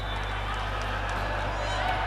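Young men clap hands together.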